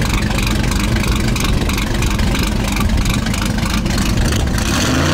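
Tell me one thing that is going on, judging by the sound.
A drag car's engine idles with a loud, lumpy rumble close by.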